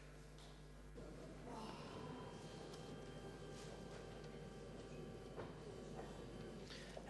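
A man speaks calmly through a microphone in a large hall.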